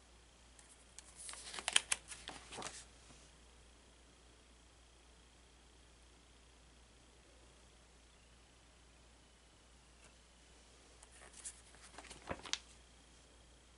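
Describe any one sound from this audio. Paper pages rustle and flap as they are turned.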